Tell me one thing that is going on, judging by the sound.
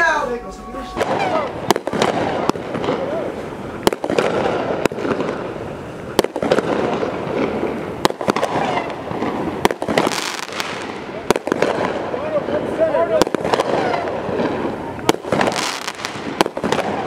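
Fireworks bang and crackle.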